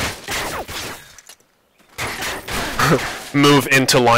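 Gunfire cracks in short bursts.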